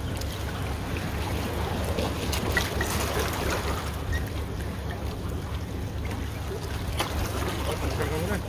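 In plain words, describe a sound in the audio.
Plastic rustles as a man handles a bag.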